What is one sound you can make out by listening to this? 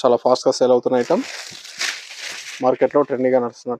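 Silk fabric rustles as a man unfolds it.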